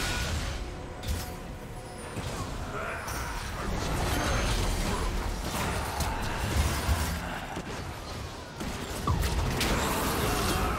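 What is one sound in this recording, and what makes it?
Blows and blasts thud as game fighters clash.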